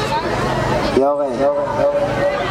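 A man speaks loudly through a microphone over loudspeakers.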